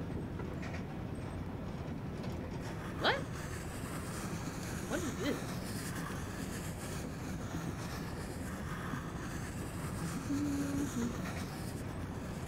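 A crayon scratches and scribbles across paper.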